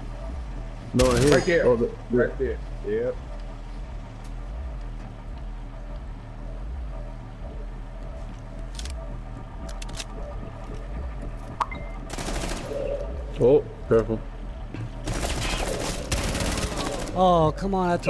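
A rifle fires short rapid bursts.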